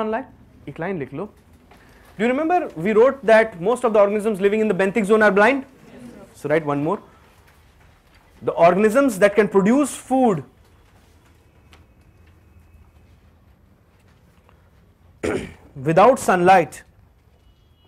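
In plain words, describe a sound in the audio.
A man lectures in a small room, speaking with animation and pausing between phrases.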